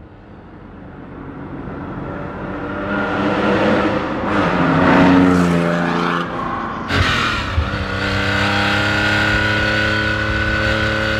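A car engine roars and revs up as it accelerates.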